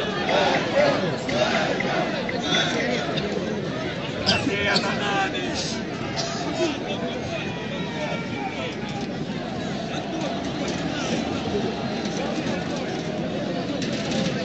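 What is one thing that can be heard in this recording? Many men and women talk and murmur nearby in a crowd outdoors.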